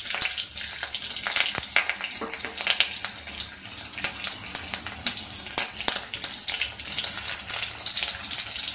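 Hot oil sizzles and crackles in a pan.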